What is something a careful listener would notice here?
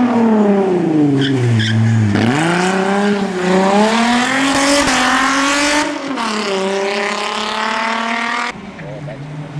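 A hill climb race car's engine revs hard and shifts gears as it accelerates.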